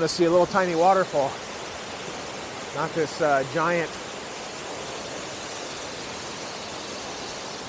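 A waterfall roars steadily, splashing onto rocks.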